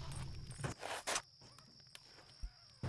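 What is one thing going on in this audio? A pistol fires a few loud shots.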